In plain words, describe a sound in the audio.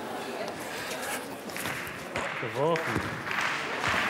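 A young man grunts as he throws a heavy ball.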